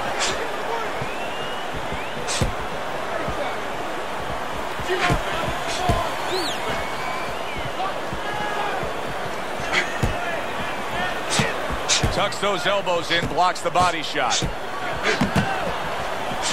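A crowd murmurs and cheers in a large arena.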